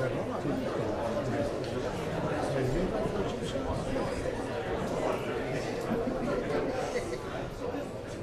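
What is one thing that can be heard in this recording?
Spectators shout and cheer.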